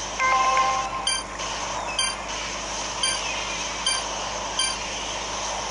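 Short electronic blips sound in a quick series.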